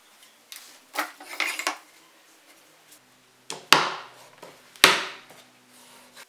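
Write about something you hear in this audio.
A wooden board knocks against a workbench.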